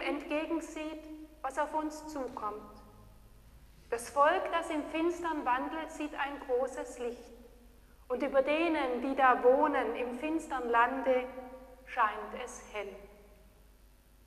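An elderly woman sings slowly and alone in an echoing hall.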